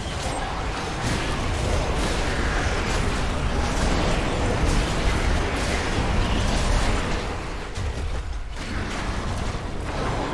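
Weapons clash and spells burst in a fast game battle.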